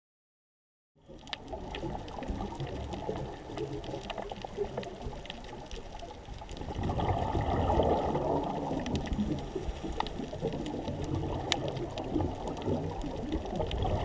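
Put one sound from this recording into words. Water rumbles low and muffled underwater.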